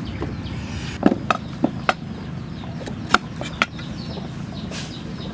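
A knife chops through a carrot on a wooden block with sharp knocks.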